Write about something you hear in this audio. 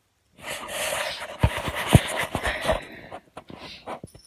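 Rustling and knocking sounds come from a phone being handled close up.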